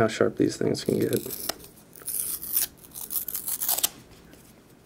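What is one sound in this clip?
Paper crinkles and rustles as a backing is peeled off.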